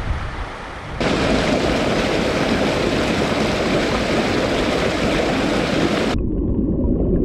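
Water rushes and splashes loudly over a small waterfall close by.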